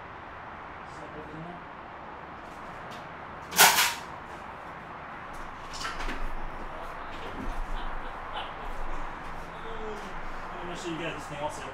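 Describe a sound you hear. A man handles a plastic object on the ground with clicks and rattles.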